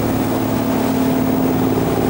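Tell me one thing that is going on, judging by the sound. Water churns in a boat's wake.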